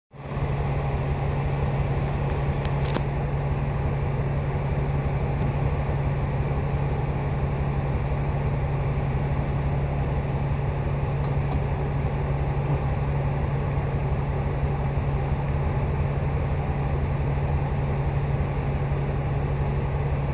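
A car engine idles close by with a steady low hum.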